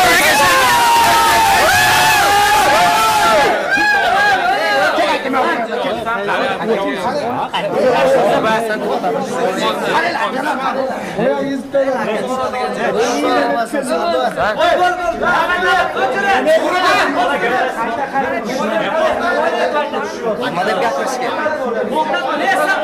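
A crowd of young men cheers and chants loudly close by.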